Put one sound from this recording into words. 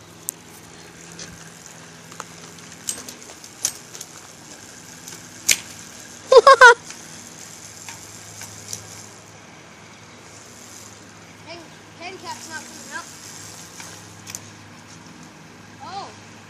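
A bicycle wheel spins with a ticking freewheel.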